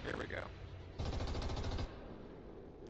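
A machine gun fires a rapid burst.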